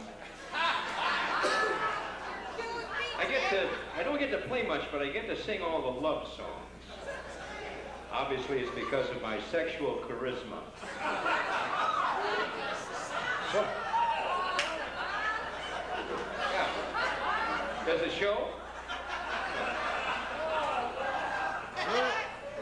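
Older men laugh heartily nearby.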